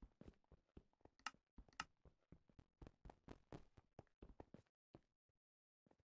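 Quick taps on a touchscreen keyboard click in a rapid series.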